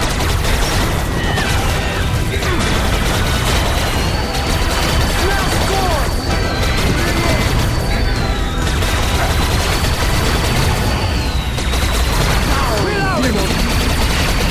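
Monsters screech and roar.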